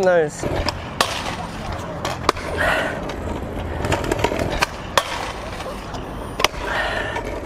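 Scooter wheels roll and rumble on brick paving.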